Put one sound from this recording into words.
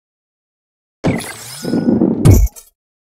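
A ball drops into a hole with a bright chime.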